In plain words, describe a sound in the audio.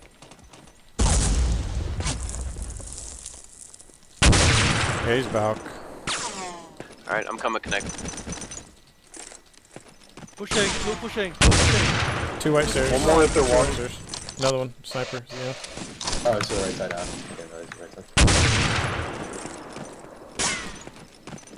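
A rifle fires loud single shots that echo and fade.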